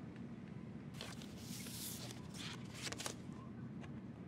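A cardboard record sleeve rustles and scrapes as a record is slid out.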